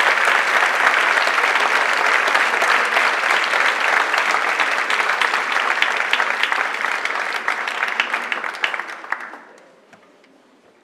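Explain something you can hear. A large audience applauds loudly in a hall, then the applause dies away.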